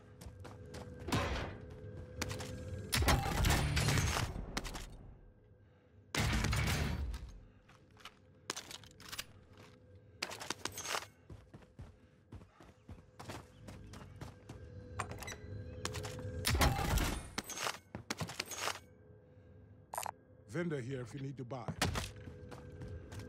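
Loot pickups in a video game clatter and chime in short bursts.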